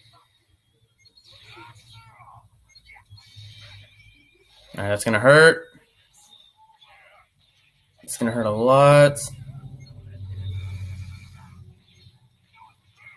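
A young man talks quietly and calmly close to a microphone.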